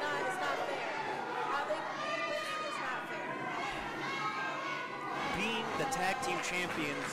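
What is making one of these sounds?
A small crowd cheers and shouts in an echoing hall.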